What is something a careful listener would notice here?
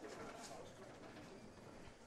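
A bowling ball crashes into candlepins, which clatter as they fall.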